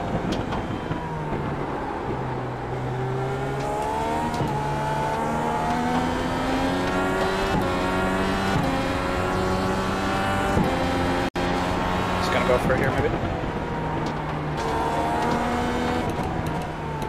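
A racing car engine roars and whines up and down through the gears.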